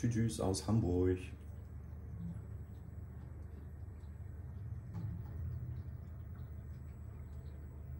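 Water pumps hum low and steady in an aquarium.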